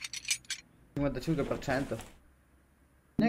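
A young man speaks casually into a microphone.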